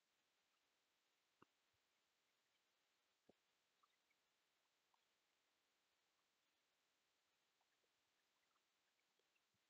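Yarn rustles softly as hands stitch a crocheted doll.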